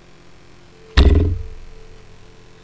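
A heavy staff strikes with a sudden booming thud that rings briefly.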